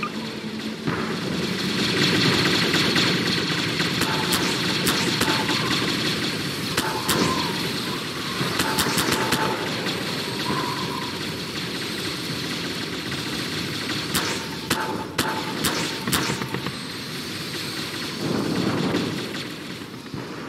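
A swarm of giant insects chitters and screeches.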